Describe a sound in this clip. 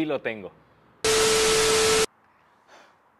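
A loud test tone beeps over harsh hiss.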